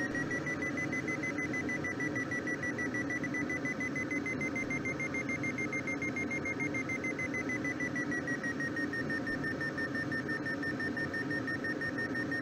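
Wind rushes steadily past a glider.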